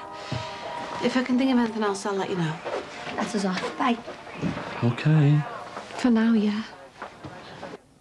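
A woman speaks firmly close by.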